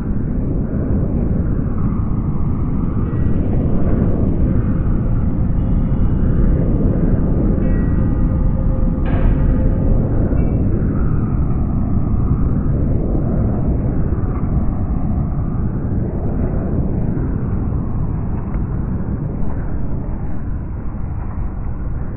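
Strong wind roars and buffets through bare tree branches outdoors.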